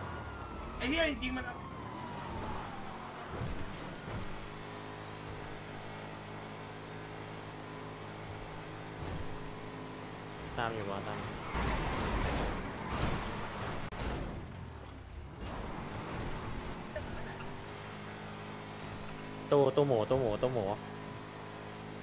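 A car engine hums and revs steadily while driving.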